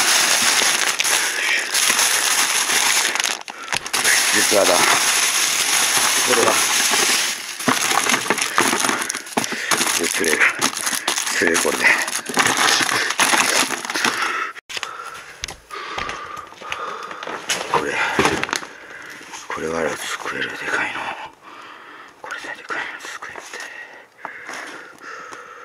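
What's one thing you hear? Plastic bags crinkle and rustle close by.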